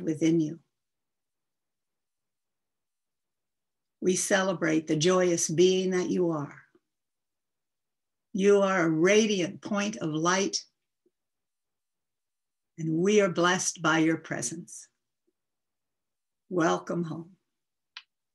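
An older woman speaks calmly and slowly through a microphone on an online call, with long pauses.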